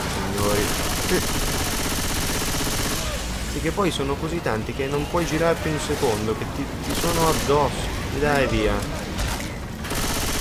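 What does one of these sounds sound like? A pistol fires repeated shots.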